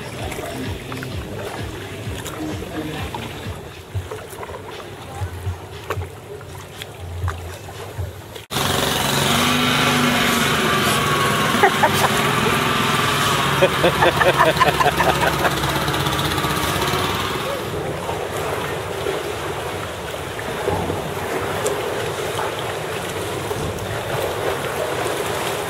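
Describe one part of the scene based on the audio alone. Kayak paddles dip and splash in calm water.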